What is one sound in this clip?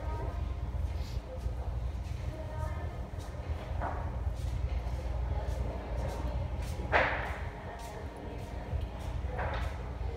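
A man's footsteps tap on a hard floor as he walks away.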